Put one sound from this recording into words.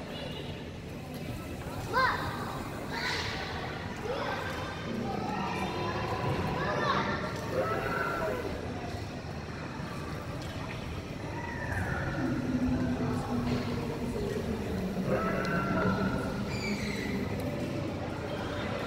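Children and adults chatter and call out nearby in a large echoing hall.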